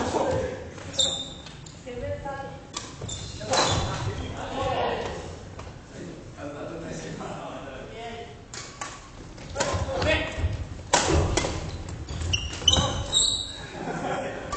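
Shoes squeak on a gym floor.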